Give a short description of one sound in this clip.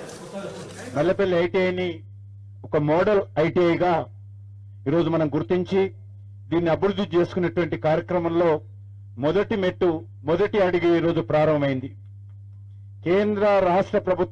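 A man speaks into a microphone through a loudspeaker, in measured phrases with pauses.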